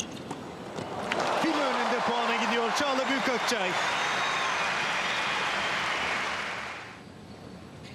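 A large crowd claps and cheers loudly.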